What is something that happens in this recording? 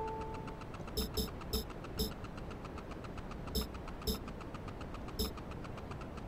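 Short electronic beeps tick as a menu is scrolled.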